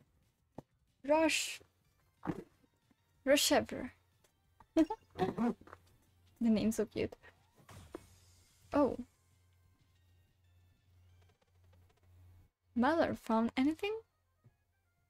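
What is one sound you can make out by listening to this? A young woman speaks with animation into a close microphone.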